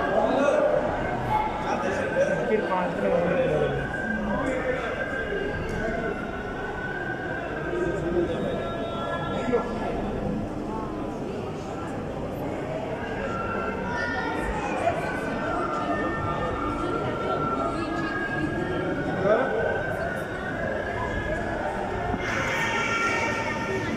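A crowd of visitors murmurs and chatters in a large echoing hall.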